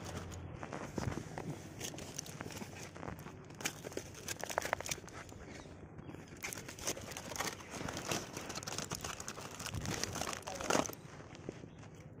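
A plastic bag rustles and crinkles in a man's hands.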